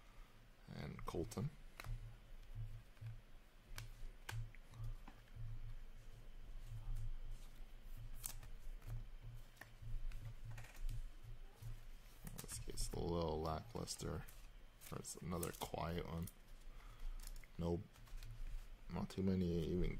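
Cardboard cards rustle and click as they are shuffled and sorted by hand.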